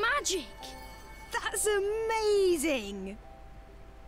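A young woman speaks with excitement.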